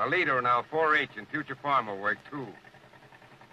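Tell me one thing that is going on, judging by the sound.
A man speaks briefly and calmly.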